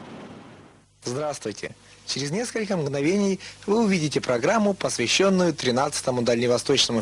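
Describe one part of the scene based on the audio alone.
A young man talks with animation into a handheld microphone, close by.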